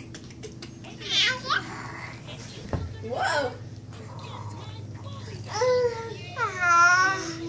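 A baby laughs and squeals close by.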